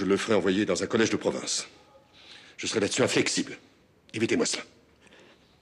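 A middle-aged man speaks in a low, serious voice close by.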